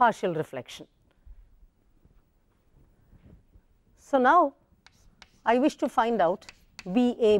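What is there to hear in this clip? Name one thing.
A woman speaks calmly into a close microphone, in short bursts.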